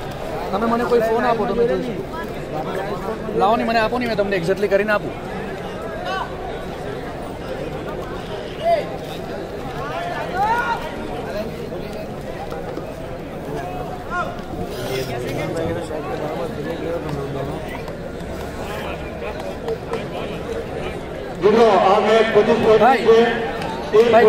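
A large outdoor crowd chatters and murmurs.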